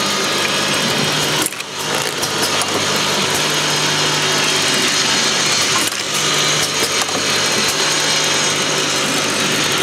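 A bottle filling and capping machine runs with a steady mechanical hum and clatter.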